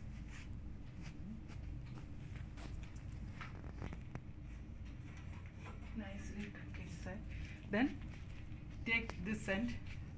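Hands smooth and rub cloth with a soft rustle.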